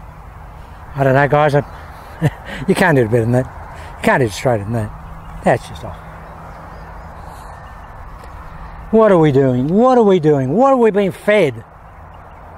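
A man speaks calmly and clearly close by.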